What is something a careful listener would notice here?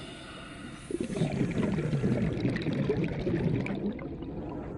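Air bubbles gurgle and burble underwater.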